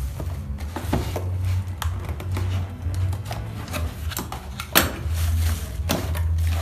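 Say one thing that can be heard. A cardboard box scrapes and knocks on a table.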